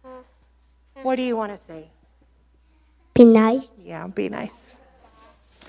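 A young child speaks softly into a microphone.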